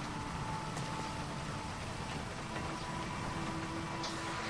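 A truck engine rumbles as the truck drives off.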